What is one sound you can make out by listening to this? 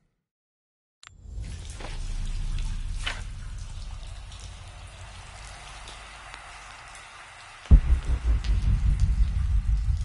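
A low wind rumbles through an echoing cave.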